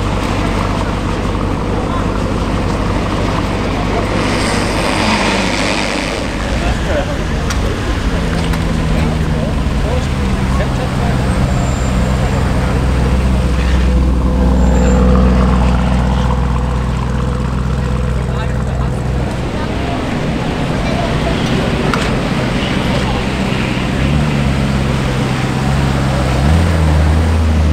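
A sports car engine rumbles deeply nearby.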